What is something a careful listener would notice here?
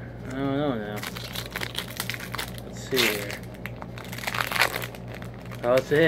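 Plastic wrapping crinkles and tears.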